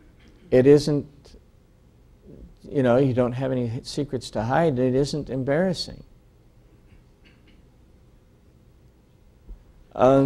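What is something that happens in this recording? An older man speaks slowly and deliberately through a microphone, with pauses.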